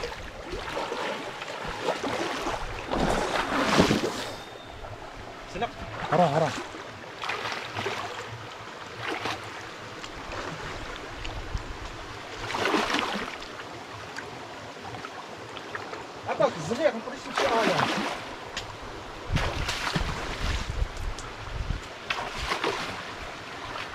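Feet splash and wade through shallow water.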